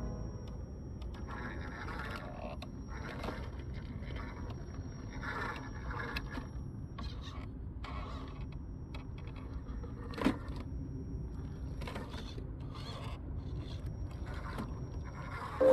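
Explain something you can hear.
Rubber tyres scrape and crunch over rock.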